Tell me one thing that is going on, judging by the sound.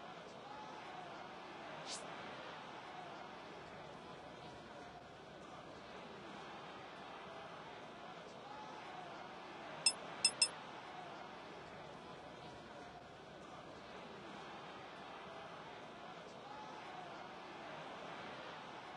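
A crowd roars in a large stadium.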